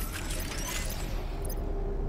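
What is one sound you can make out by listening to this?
A teleport portal whooshes and crackles.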